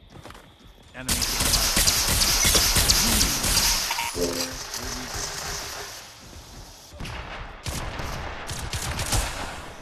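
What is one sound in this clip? Pistols fire in rapid bursts.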